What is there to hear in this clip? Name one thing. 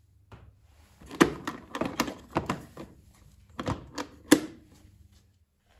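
Plastic boxes clatter as they are lifted and stacked.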